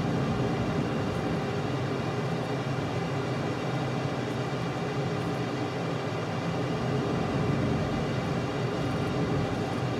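A jet engine roars steadily, heard from inside a cockpit.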